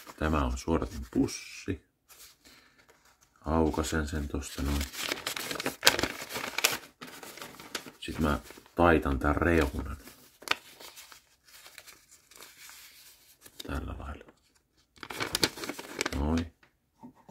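Stiff paper crinkles and rustles in a man's hands.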